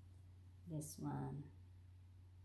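A woman speaks briefly, close by.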